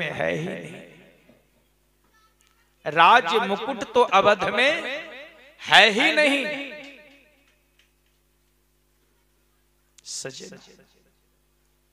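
A young man sings loudly into a microphone in phrases, with a ringing echo.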